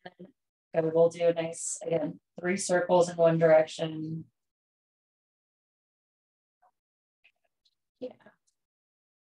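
A woman speaks calmly through a microphone, close by.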